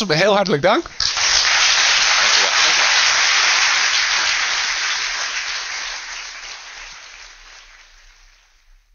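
A large audience applauds loudly, then the applause slowly fades.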